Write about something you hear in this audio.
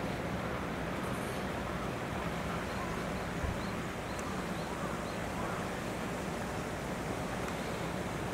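A chimpanzee rustles through dry branches and leaves.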